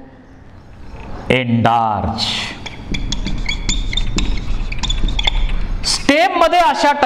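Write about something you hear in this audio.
A marker squeaks on a whiteboard.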